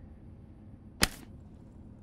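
A small glass bottle clinks as it is picked up.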